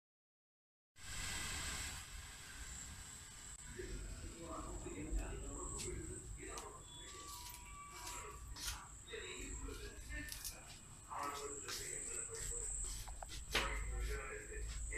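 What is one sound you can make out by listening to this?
A hand-held sparkler fizzes and crackles outdoors.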